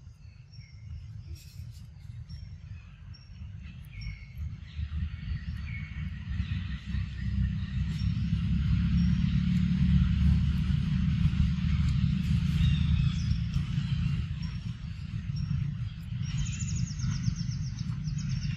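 A young macaque chews and slurps soft ripe mango.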